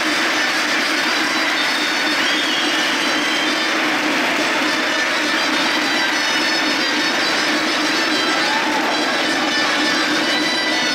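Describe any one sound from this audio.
A small band plays lively folk music through loudspeakers in a large echoing hall.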